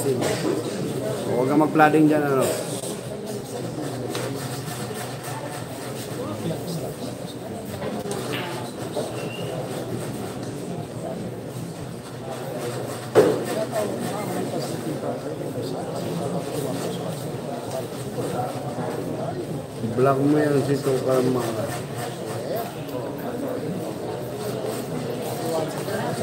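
A crowd of young men chatters and calls out nearby.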